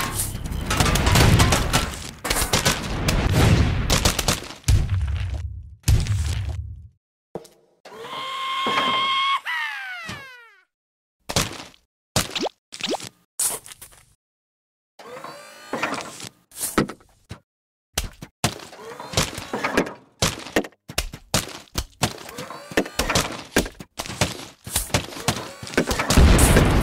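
Melons thud as they are hurled and land with splats.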